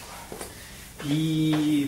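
A marker squeaks sharply on a whiteboard.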